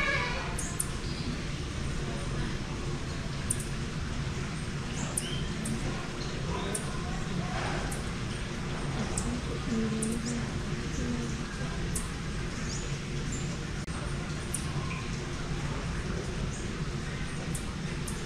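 Two women talk quietly at a distance.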